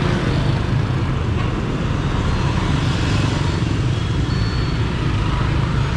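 Motorbikes pass by on a street with a low engine rumble.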